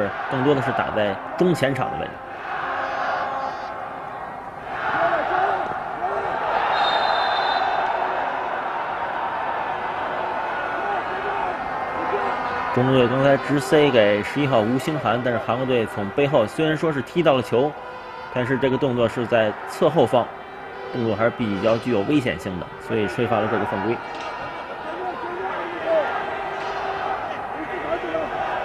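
A crowd murmurs and cheers in a large stadium.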